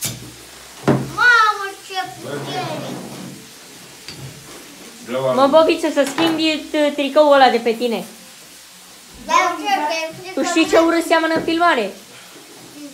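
A young boy sings loudly close by.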